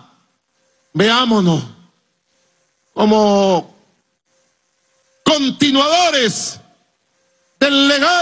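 A man speaks forcefully into a microphone over loudspeakers, in short bursts with pauses.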